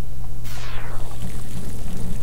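Steam hisses out in a short burst.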